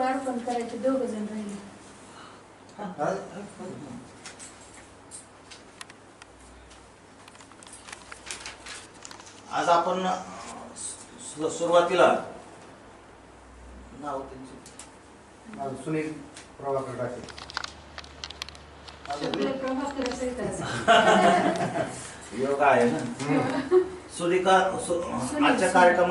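An elderly man speaks nearby in bursts, with pauses between.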